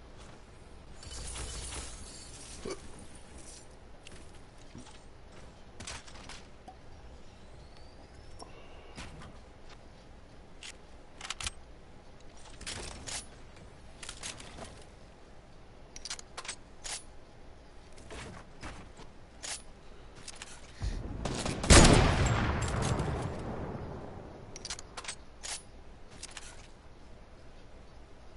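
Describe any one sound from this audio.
Footsteps clatter on wooden planks.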